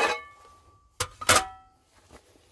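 A heavy metal pan is set down on a table with a knock.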